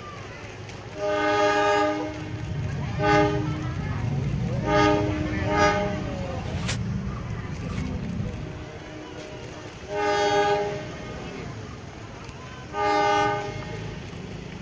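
A train horn blares in loud repeated blasts.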